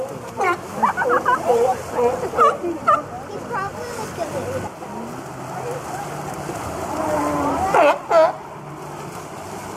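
Sea lions bark loudly.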